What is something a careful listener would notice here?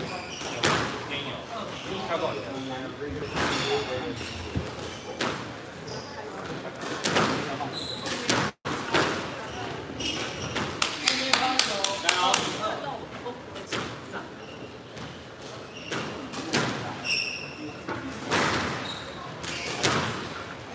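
A squash ball smacks sharply against the walls in an echoing court.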